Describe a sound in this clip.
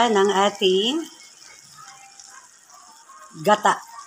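A thick liquid pours and splashes softly into a pot.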